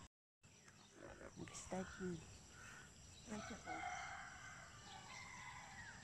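A woman speaks casually close by.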